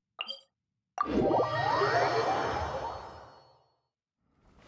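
A teleport effect whooshes and chimes.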